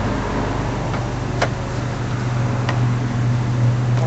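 A car door opens.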